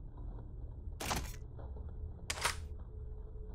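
A menu clicks as a weapon is selected.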